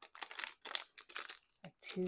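A plastic packet crinkles between fingers.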